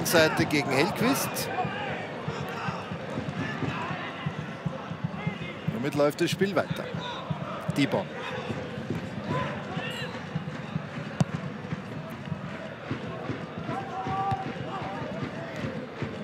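A stadium crowd chants and cheers steadily in the distance.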